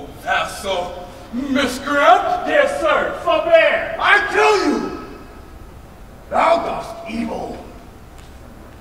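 A man speaks loudly and theatrically in a large echoing hall.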